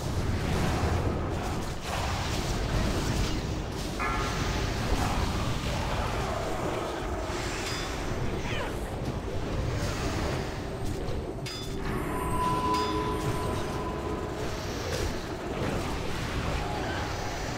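Spell effects crackle and boom in a battle.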